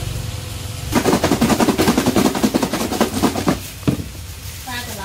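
Food rattles quickly inside a shaken plastic container.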